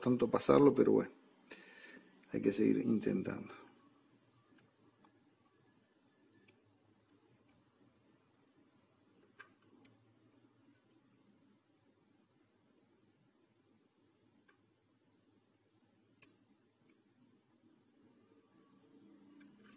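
Metal tweezers tap and scrape faintly on a circuit board.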